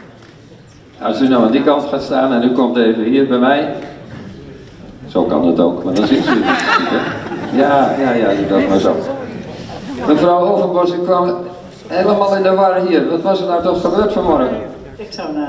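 A man speaks with animation into a microphone, heard over loudspeakers in a large hall.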